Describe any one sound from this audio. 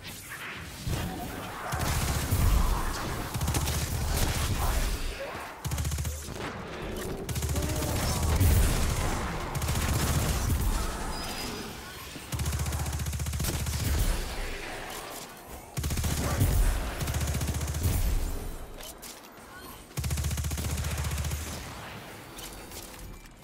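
Rapid gunfire booms and rattles in bursts.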